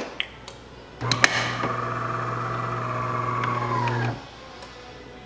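A coffee machine pump hums steadily as coffee drips into a glass.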